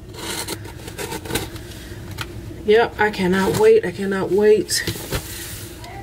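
A small blade scrapes and slices through packing tape on a cardboard box.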